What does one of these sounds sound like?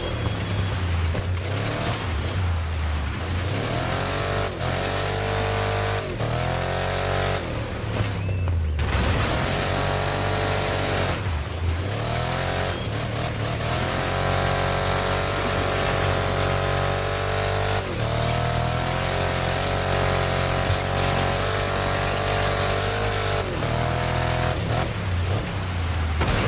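A truck engine roars and revs up and down through gear changes.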